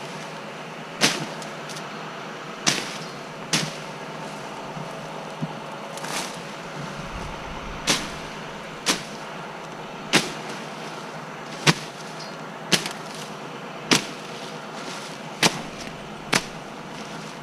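Pruning shears snip sharply through vines, again and again.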